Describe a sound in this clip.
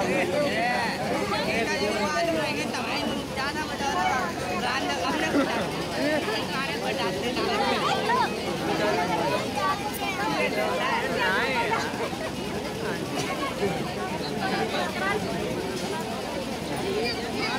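A crowd of young women and children chatter and call out loudly close by.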